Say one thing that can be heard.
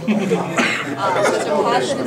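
A middle-aged man laughs out loud.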